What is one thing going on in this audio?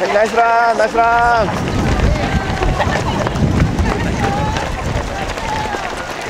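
A crowd of spectators nearby cheers and calls out.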